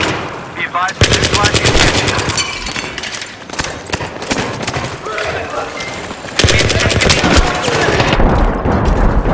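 An automatic rifle fires.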